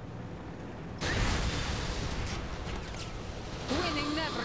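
An explosion booms suddenly, followed by roaring noise.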